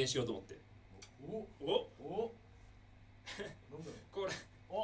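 A young man speaks casually into a microphone.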